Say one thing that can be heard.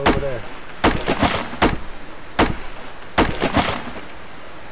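An axe chops into a tree trunk with sharp, repeated thuds.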